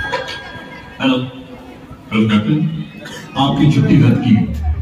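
A woman speaks through loudspeakers outdoors, in short phrases.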